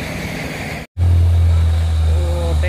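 A truck engine rumbles as a truck approaches along a road.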